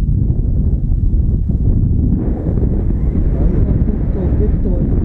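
Strong wind rushes and buffets loudly against a microphone high in the open air.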